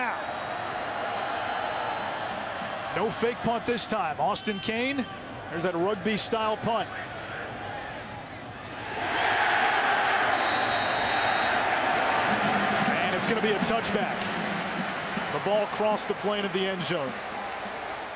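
A large crowd roars and cheers in a stadium, swelling louder.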